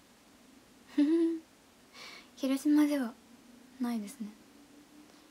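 A young woman speaks softly in short phrases close to a microphone.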